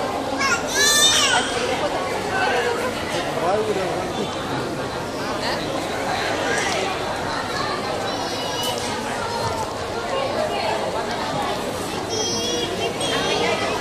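A baby squeals and babbles.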